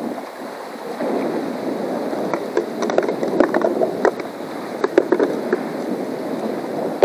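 Water splashes and drips close by.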